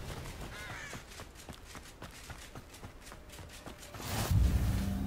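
Armoured footsteps run quickly over a dirt path.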